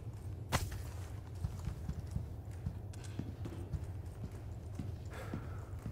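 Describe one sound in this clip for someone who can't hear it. Footsteps thud softly on a wooden floor.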